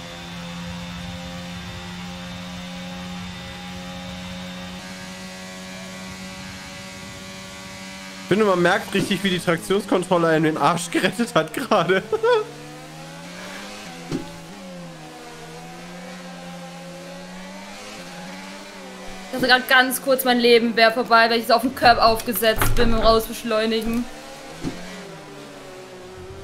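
A racing car engine whines and revs steadily, its pitch rising and falling with the gears.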